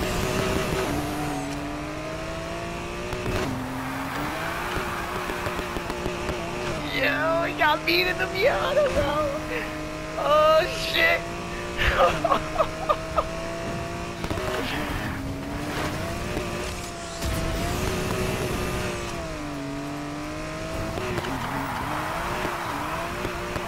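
A car engine roars steadily, its pitch rising and falling with the gears.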